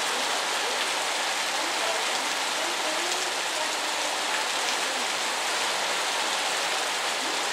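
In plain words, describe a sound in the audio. Wind gusts through leaves.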